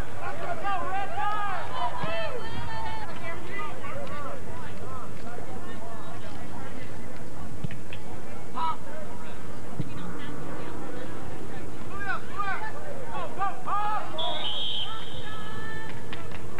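Young spectators shout and cheer nearby outdoors.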